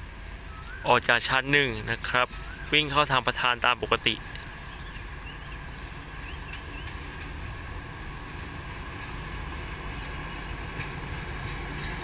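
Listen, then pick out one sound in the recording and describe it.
A diesel locomotive rumbles low as it slowly approaches, growing louder.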